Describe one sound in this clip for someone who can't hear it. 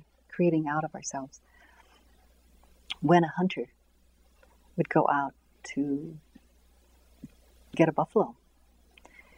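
An older woman speaks calmly and slowly, close by, with pauses.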